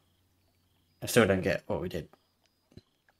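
A man speaks calmly in a deep voice close to a microphone.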